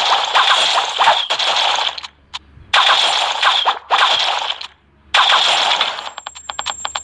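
Arrows whoosh and strike targets in a game in loud bursts.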